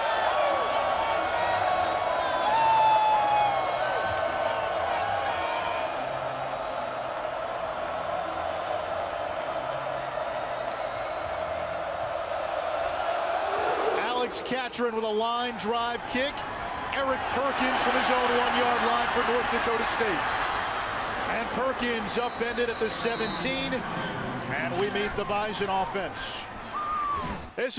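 A large crowd cheers and roars in a big echoing stadium.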